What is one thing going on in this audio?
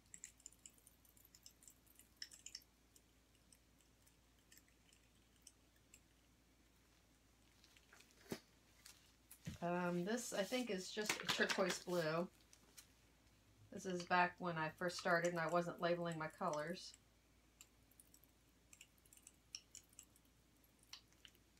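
Acrylic paint pours from a squeeze bottle into a plastic cup.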